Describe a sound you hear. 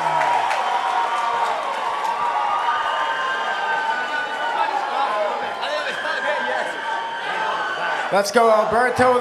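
A man announces over a loudspeaker in an echoing hall.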